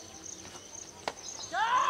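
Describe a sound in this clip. A cricket bat hits a ball with a sharp crack.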